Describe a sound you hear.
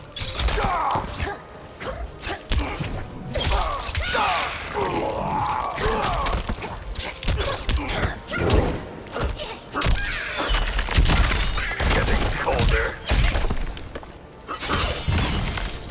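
Punches and kicks land with heavy thuds in a fighting video game.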